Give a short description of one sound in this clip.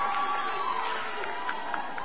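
People in an audience clap their hands.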